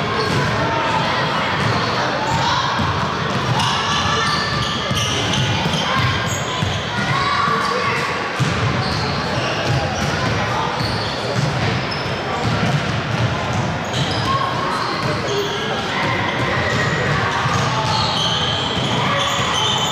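Sneakers squeak on a wooden floor in a large echoing hall.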